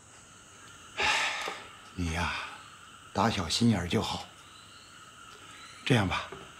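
An older man answers slowly and wearily, close by.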